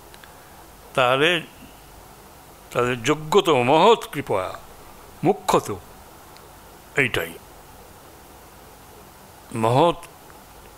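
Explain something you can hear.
An elderly man reads aloud slowly into a microphone, in short phrases with pauses.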